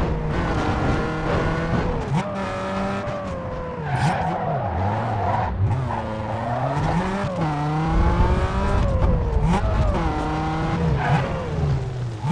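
A sports car engine revs hard, climbing in pitch and dropping with each gear change.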